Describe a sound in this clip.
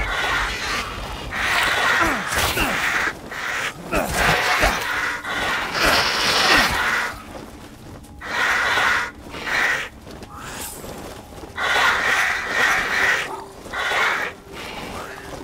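Dry brush rustles and crackles as someone pushes through it.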